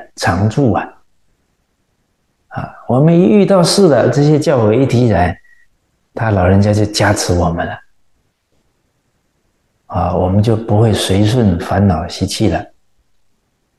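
A middle-aged man speaks calmly into a close microphone, pausing between phrases.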